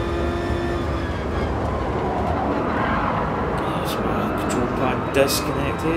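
A racing car engine drops in pitch as the car brakes and shifts down.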